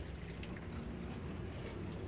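Water sprays from a hose in a fine mist.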